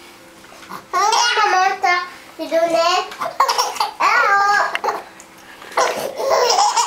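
A baby laughs loudly in bursts of high squeals.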